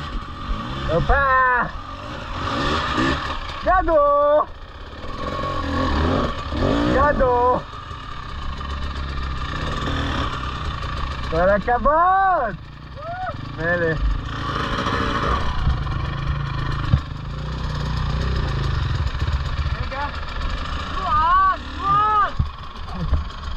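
A dirt bike engine revs hard in short bursts close by.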